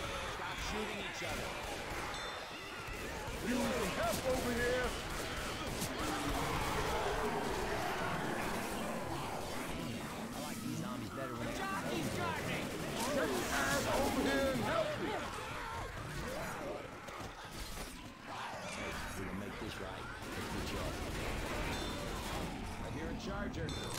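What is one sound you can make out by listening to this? Zombies growl and snarl in a dense horde.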